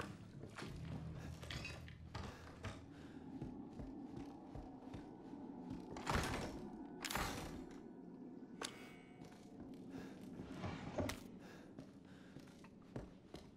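Footsteps thud on wooden floorboards and stairs.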